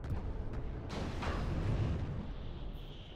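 A mech's laser fires with a sharp burst.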